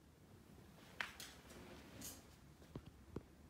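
A dog's claws click and thump on a hard floor.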